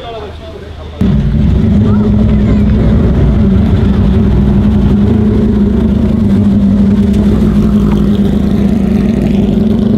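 A race car engine rumbles loudly at close range.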